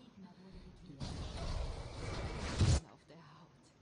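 A magic spell whooshes and bursts with a rushing roar.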